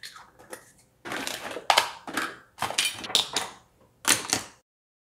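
Plastic bottles and tubes clatter onto a hard countertop.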